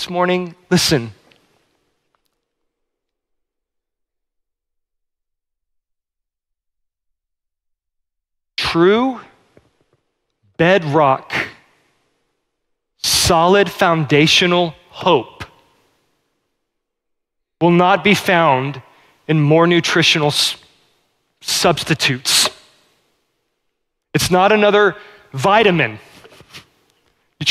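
A man speaks with animation through a microphone, pausing often.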